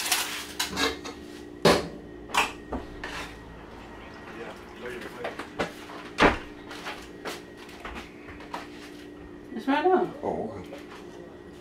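A metal lid clinks against a pot.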